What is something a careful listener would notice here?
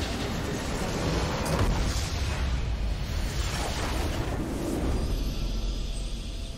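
A loud magical explosion roars and crackles.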